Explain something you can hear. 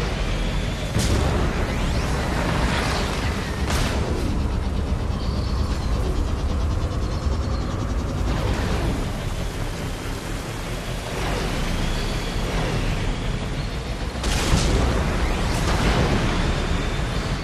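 A hovering craft's engine hums and roars steadily as it flies low over rough ground.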